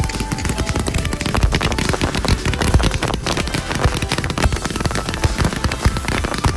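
Fireworks pop and crackle rapidly in the open air.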